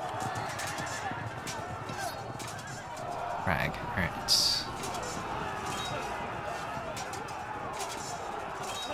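Swords and armour clash in a battle.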